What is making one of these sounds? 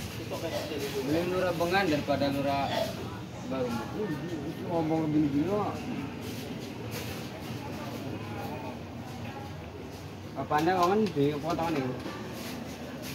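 A man speaks close by in a calm, casual voice.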